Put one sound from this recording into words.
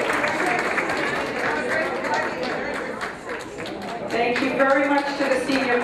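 A group of elderly men and women sing together.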